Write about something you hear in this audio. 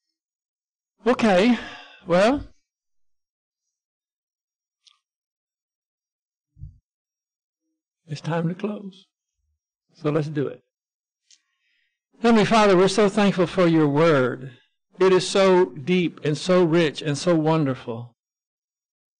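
An elderly man speaks calmly into a microphone, in bursts with pauses.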